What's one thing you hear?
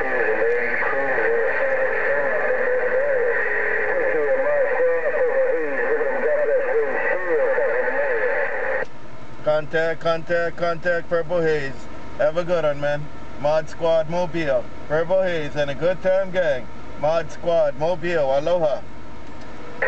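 A man's voice comes through a radio receiver's speaker, crackly and distorted.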